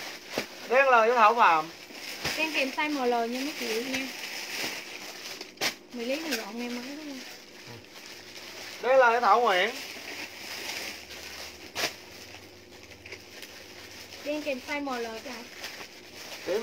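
Cloth rustles as a young woman handles a pair of shorts.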